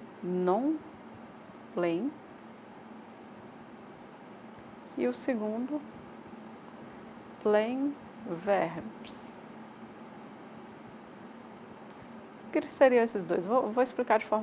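A woman speaks in short bursts close to a microphone, with pauses in between.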